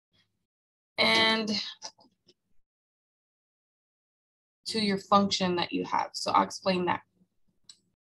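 A woman speaks calmly through a microphone, in short bursts with pauses.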